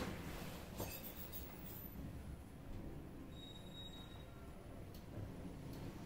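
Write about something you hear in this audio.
A lift car hums and rumbles steadily as it travels.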